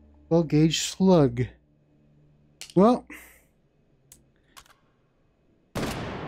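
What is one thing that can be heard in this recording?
Metal gun parts click and clatter.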